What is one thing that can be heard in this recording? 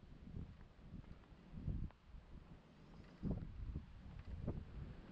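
Wind gusts rumble and buffet in the open air.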